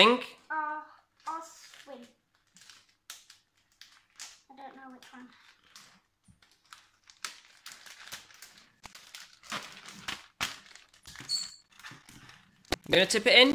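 A plastic bag of shredded paper rustles and crinkles.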